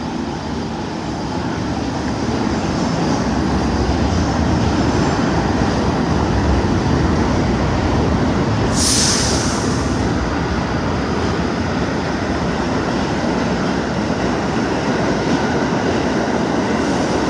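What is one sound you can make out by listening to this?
A subway train rumbles and roars past, echoing through a tunnel.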